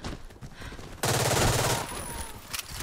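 A rifle fires a rapid burst of gunshots at close range.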